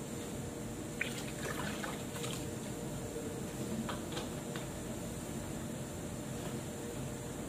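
A plastic bottle is handled and set down with a knock.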